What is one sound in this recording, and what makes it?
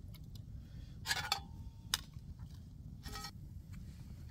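A metal pan clatters as it is handled.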